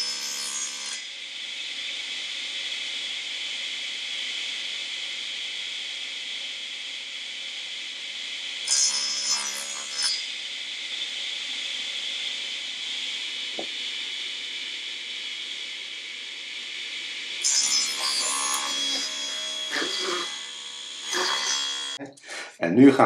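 A table saw runs with a steady high whine.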